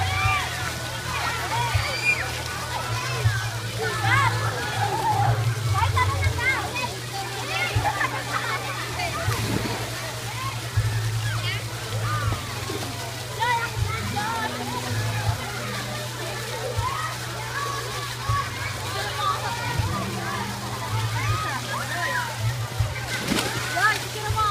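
Children shout and laugh in a pool outdoors.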